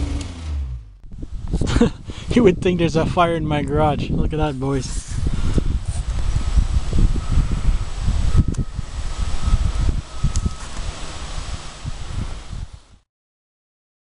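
Wind blows against the microphone outdoors.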